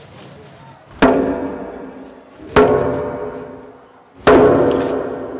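A hand drum is struck a few times, each beat ringing out.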